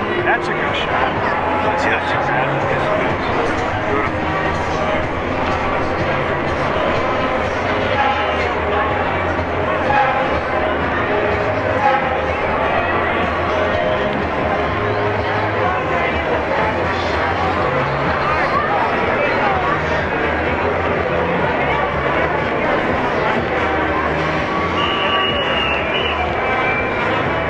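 A marching band plays music outdoors.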